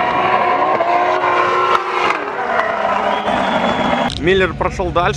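Car engines roar and rev loudly.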